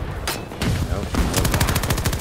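A machine gun fires a rapid burst close by.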